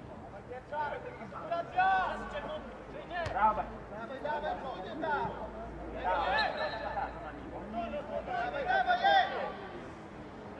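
Players shout to each other across an open outdoor field.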